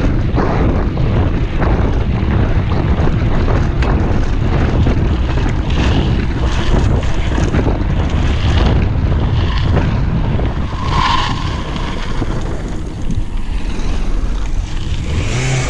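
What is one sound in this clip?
Bicycle tyres crunch and rattle over a gravel road.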